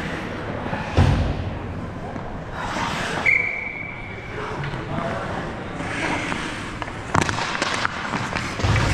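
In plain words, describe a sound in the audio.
Hockey sticks clack sharply against the ice and a puck.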